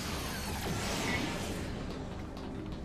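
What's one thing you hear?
A magical burst of energy whooshes and roars loudly.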